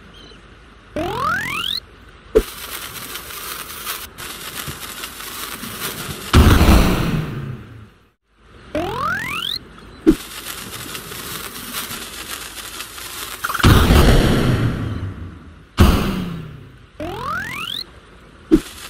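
A rising electronic whistle sounds as a game character is launched.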